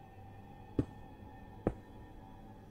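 Blocks thud as they are placed, twice in quick succession.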